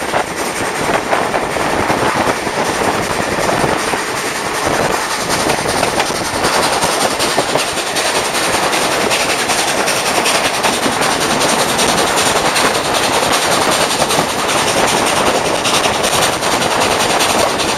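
A train rattles and clatters steadily along the tracks.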